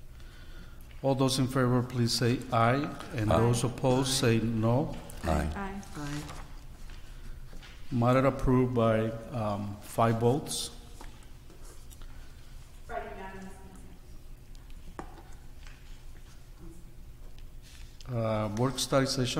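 A man speaks calmly through a microphone in a large room, with pauses.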